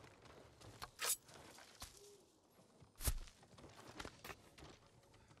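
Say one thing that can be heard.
Sword blows clash and thud in a fight.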